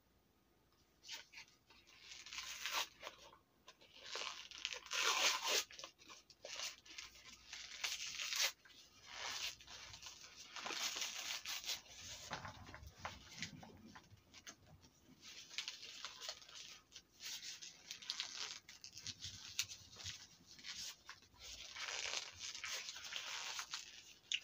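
Plastic wrapping crinkles as it is torn open.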